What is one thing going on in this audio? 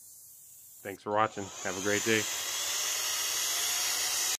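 A leaf blower blows with a steady rushing hiss.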